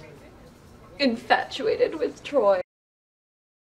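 A young woman speaks close by in an upset, whiny voice.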